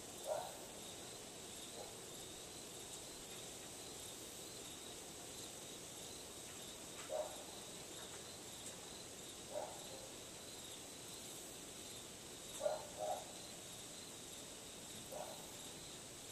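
Metal wind chimes sound softly now and then outdoors.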